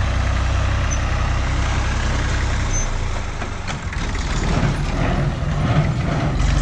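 A hay baler clatters rhythmically as it works.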